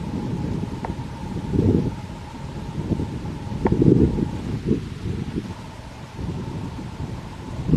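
Wind buffets in strong gusts outdoors.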